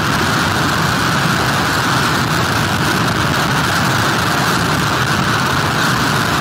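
Strong wind roars and buffets steadily.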